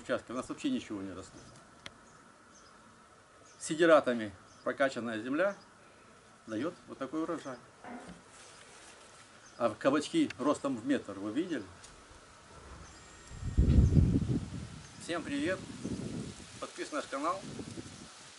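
A middle-aged man talks with animation outdoors.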